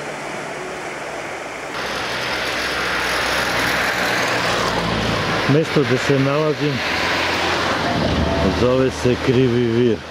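Water rushes and gurgles over shallow rapids in a river.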